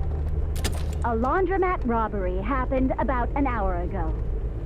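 A woman speaks calmly through a car radio.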